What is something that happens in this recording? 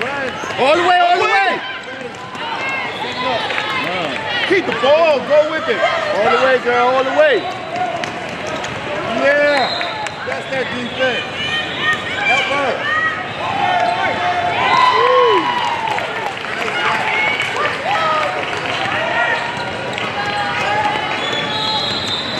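Sneakers squeak sharply on a hardwood court, over and over.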